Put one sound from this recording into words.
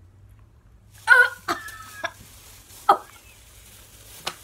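A woman coughs and gags close by.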